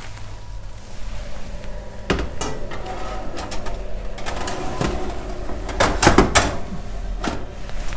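A baking tray scrapes and clatters on an oven rack.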